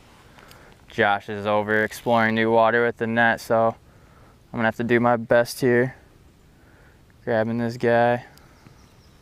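A man speaks calmly, close up.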